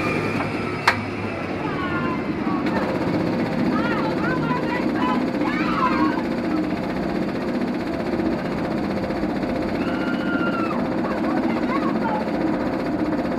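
Young riders chatter and call out with excitement nearby.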